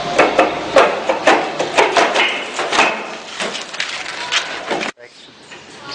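A wheelbarrow rattles as it is pushed over rough ground.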